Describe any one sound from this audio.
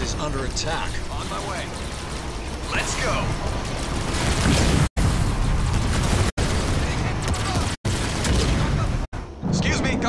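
Laser weapons fire and buzz in a battle.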